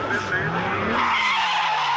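Tyres screech loudly on asphalt.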